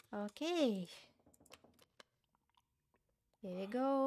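A person gulps down water.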